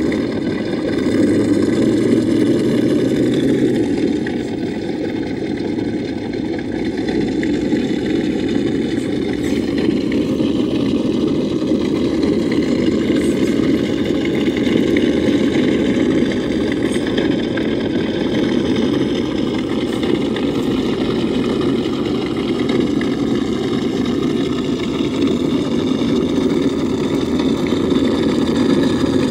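An electric motor whines steadily.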